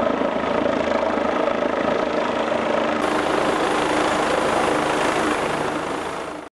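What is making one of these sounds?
A helicopter's rotor thumps and its engine whines loudly overhead.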